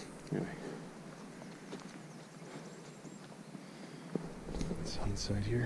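Footsteps tread on grass and dirt outdoors.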